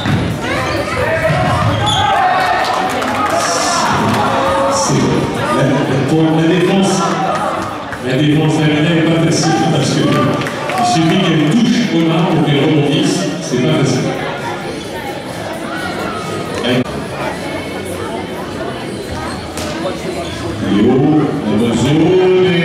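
Young men call out and shout to each other in a large echoing hall.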